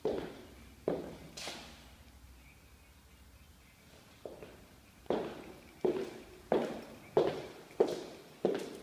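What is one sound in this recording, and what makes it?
Footsteps thud on a hard floor in an empty, echoing room.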